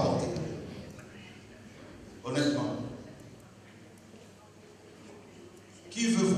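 A man speaks with animation into a microphone, in short bursts with pauses, in an echoing hall.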